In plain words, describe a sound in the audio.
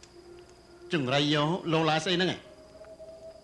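A man cries out loudly nearby.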